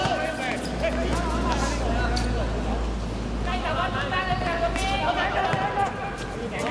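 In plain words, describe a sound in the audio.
Young men and women shout to each other across an open pitch.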